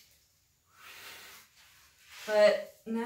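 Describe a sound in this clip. A person blows air in short puffs close by.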